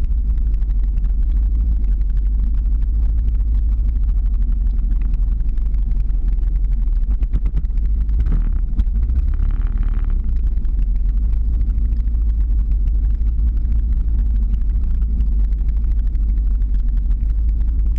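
Skateboard wheels rumble steadily on asphalt.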